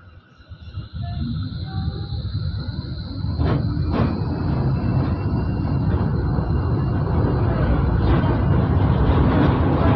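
A tram starts moving and rumbles along its rails, growing louder as it picks up speed.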